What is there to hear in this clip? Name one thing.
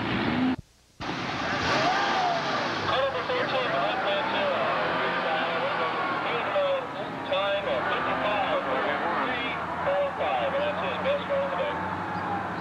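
A car engine growls and revs up and down as the car weaves around.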